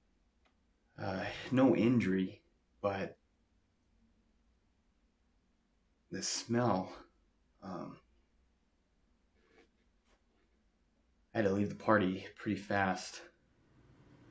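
A young man speaks calmly with pauses, close to the microphone.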